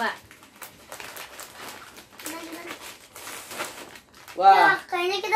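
Plastic snack packets crinkle and rustle.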